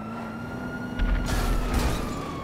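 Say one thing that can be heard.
A car crashes with a heavy thud.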